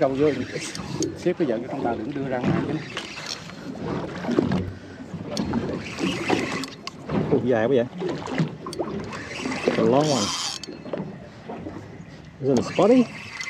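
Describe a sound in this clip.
Water laps gently against a boat's hull.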